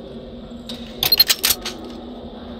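A game gun clicks and rattles as it is switched.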